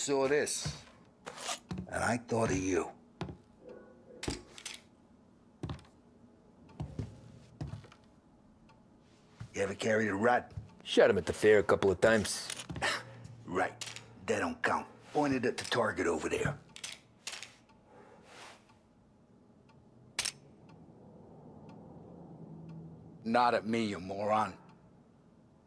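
A middle-aged man speaks calmly, close by.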